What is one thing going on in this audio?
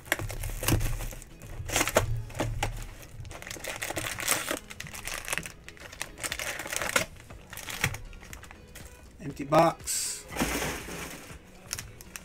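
Foil card packs crinkle and rustle as they are handled.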